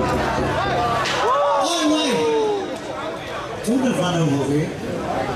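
A crowd murmurs and calls out close by.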